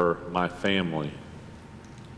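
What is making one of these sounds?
A middle-aged man speaks with animation through a microphone in an echoing hall.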